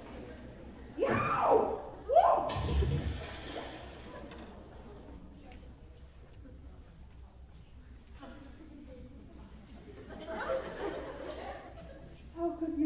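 A young woman speaks out loudly on a stage, heard from a distance in a large hall.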